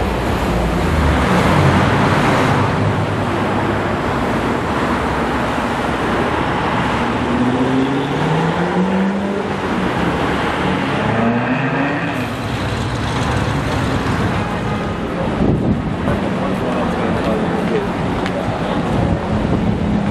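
Cars drive past on a busy street.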